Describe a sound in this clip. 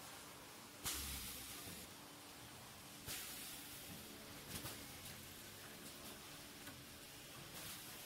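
Air hisses in sharp bursts from the machine's pneumatic parts.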